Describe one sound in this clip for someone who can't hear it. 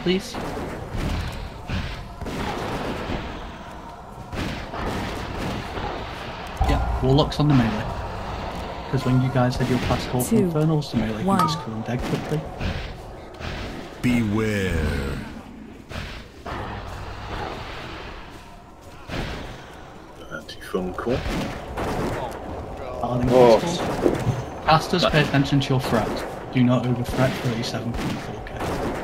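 Battle sounds of clashing weapons and crackling spells ring out throughout.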